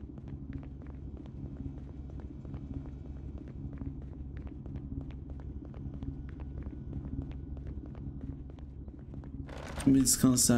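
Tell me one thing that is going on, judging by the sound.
Footsteps tap steadily on a wooden floor.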